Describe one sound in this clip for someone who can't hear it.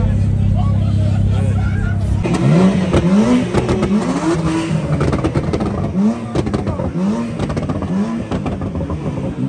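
A car engine idles with a deep rumble close by.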